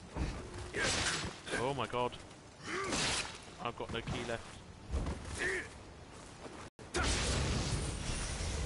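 Swords slash and strike with sharp metallic hits.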